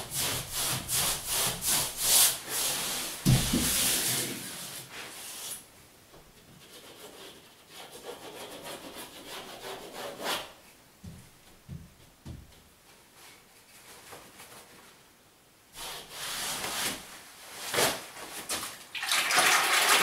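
A hand smooths and brushes over wallpaper on a wall.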